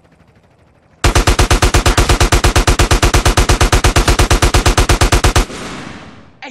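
A machine gun fires a long, rapid burst.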